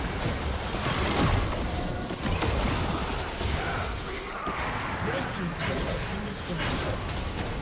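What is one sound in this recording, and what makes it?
Video game spell effects crackle and boom during a fight.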